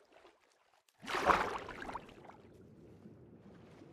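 Water gurgles and bubbles.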